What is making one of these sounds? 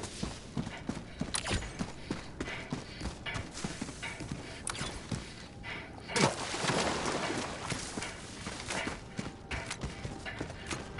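Footsteps crunch through undergrowth as a soldier in armour runs.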